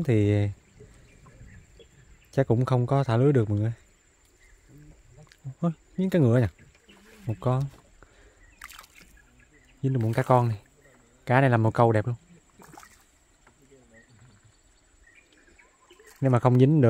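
Water laps gently against a small boat.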